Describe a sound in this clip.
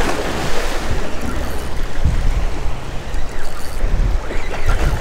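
Waves wash against rocks.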